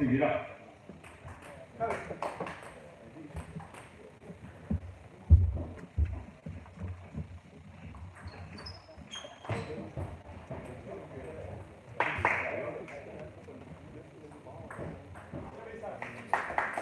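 A table tennis ball clicks on paddles and a table.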